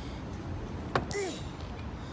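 A boot knocks on a wooden bench.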